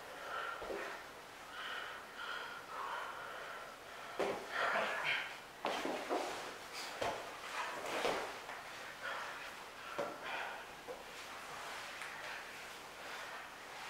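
Stiff fabric rustles as two people grapple.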